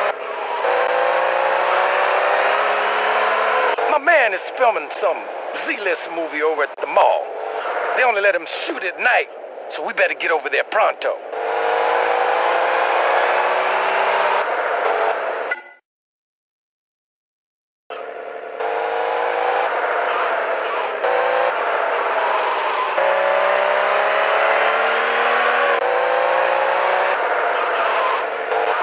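A sports car engine roars and revs up through the gears.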